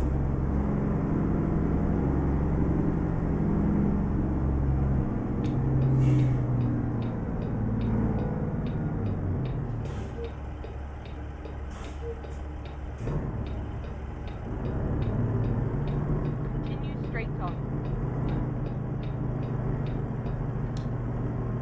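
A truck's diesel engine rumbles steadily, easing off and then building again.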